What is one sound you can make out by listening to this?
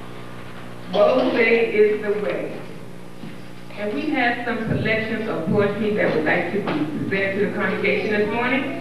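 A woman speaks with animation into a microphone over a loudspeaker.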